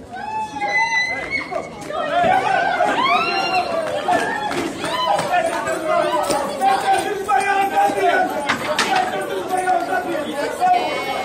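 Dancers' boots stamp and shuffle on a wooden stage.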